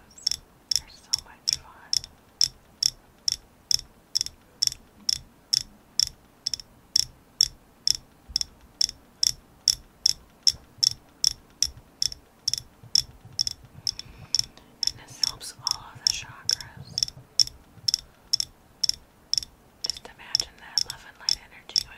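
A woman speaks softly and calmly, close to a microphone.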